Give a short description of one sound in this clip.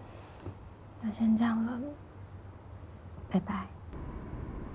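A second young woman speaks briefly into a phone, close by.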